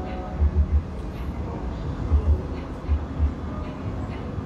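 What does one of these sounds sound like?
A woman gulps water from a plastic bottle.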